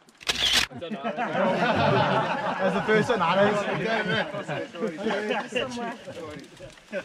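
A group of people chatter together outdoors.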